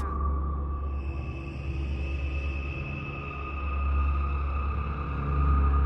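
A woman wails eerily.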